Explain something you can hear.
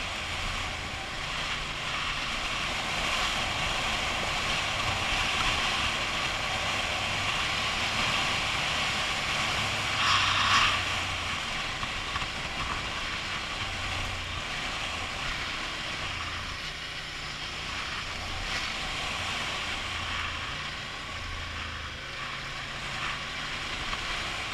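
Tyres crunch over a gravel dirt road.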